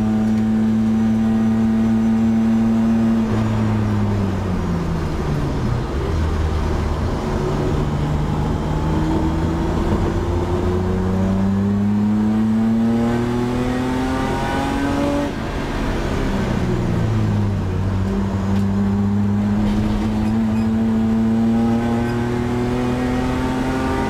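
Road and tyre noise rumbles steadily through the cabin.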